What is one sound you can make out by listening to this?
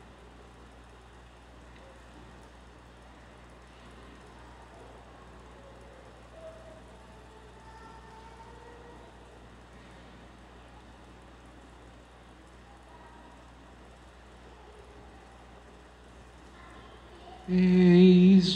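A congregation murmurs softly in a large echoing hall.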